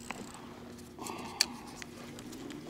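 A fishing reel rattles and clicks in a man's hands.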